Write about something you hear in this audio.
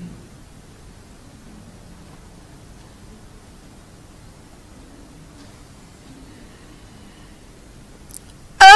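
A woman recites in a slow, drawn-out voice through a microphone.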